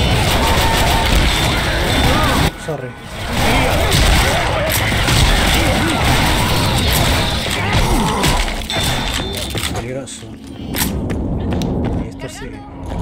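Gunshots fire rapidly and loudly.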